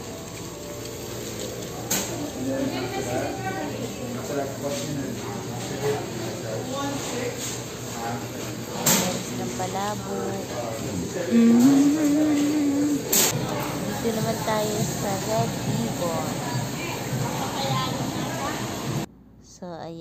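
A crowd of men and women chatter nearby in a busy, echoing room.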